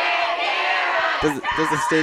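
A young woman shouts loudly.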